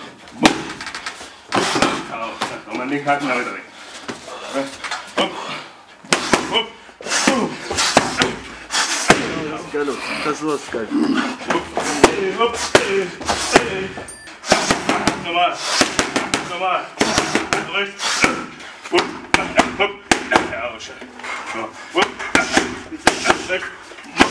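Gloved punches smack sharply against padded mitts in quick bursts.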